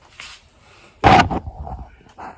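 A hand knocks against a phone with a loud thump.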